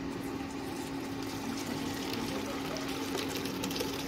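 Hot water splashes as it pours into a metal strainer.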